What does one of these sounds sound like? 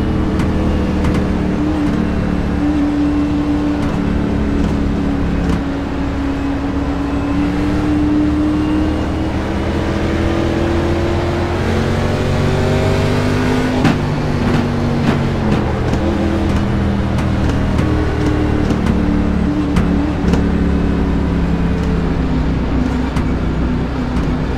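Other race cars roar past close by.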